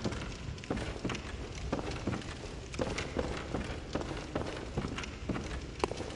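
Footsteps thud on creaky wooden stairs and floorboards.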